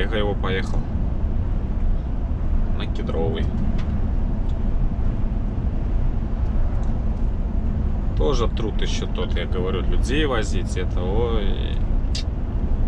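A vehicle's engine rumbles steadily from inside the cab.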